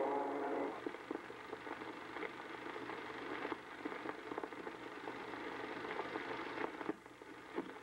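Roller skates rumble and clatter on a wooden track.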